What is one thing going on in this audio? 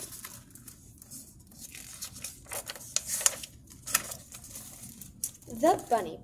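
Paper pages rustle as a book's pages are turned.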